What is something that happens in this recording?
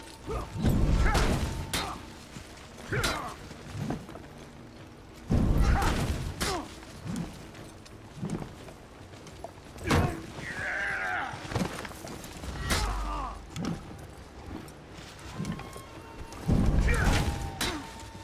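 Swords clash and clang.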